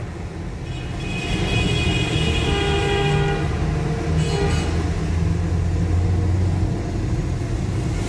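A motorcycle engine drones nearby, echoing in a tunnel.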